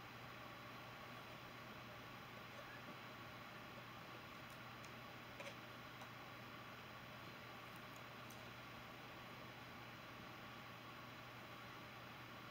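A woman peels an orange with soft tearing sounds.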